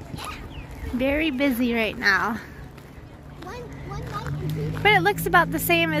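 A young child talks and calls out nearby.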